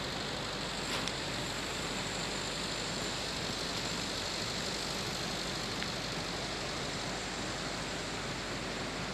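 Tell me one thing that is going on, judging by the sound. A muddy river rushes steadily nearby.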